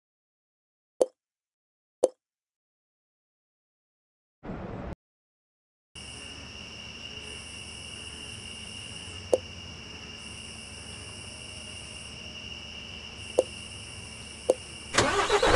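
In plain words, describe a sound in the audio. Menu buttons click sharply a few times.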